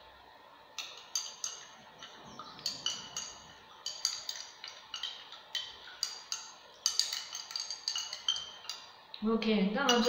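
Something rattles and clinks inside a small glass container being shaken.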